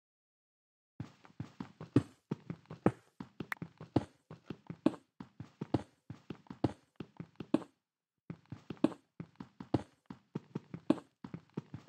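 A pickaxe chips rapidly at blocks of earth.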